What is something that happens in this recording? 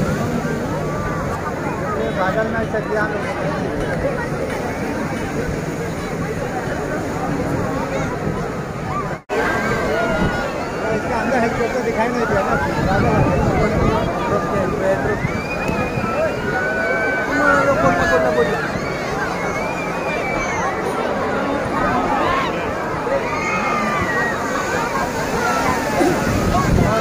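Many birds call and screech overhead.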